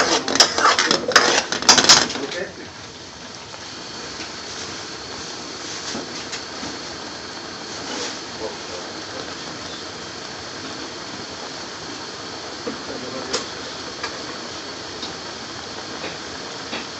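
Thick sauce bubbles and sizzles in a pan.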